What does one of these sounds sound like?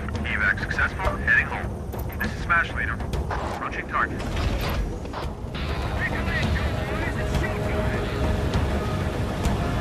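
Helicopter rotors thrum steadily.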